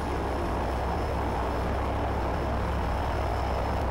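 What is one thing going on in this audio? Aircraft propellers roar steadily.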